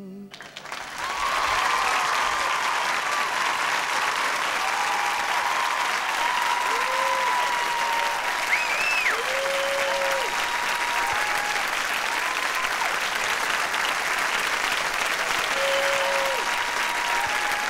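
A large crowd claps and cheers loudly in a big echoing hall.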